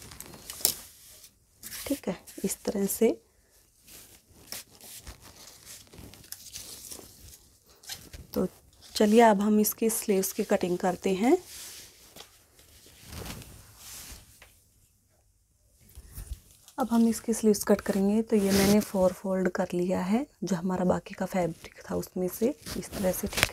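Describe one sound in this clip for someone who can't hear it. Cloth rustles and swishes as hands smooth and fold it.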